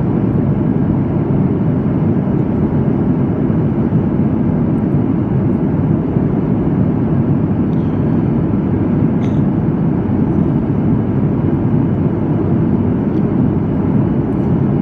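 A jet engine roars steadily with a deep, constant rumble of air.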